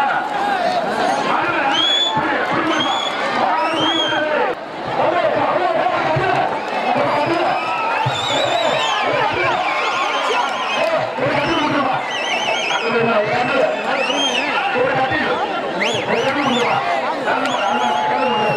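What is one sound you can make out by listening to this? A large crowd shouts and cheers loudly outdoors.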